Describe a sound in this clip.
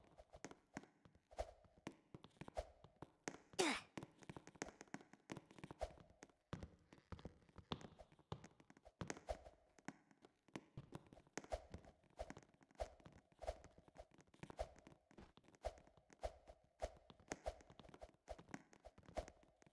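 Quick footsteps patter as a game character runs and climbs.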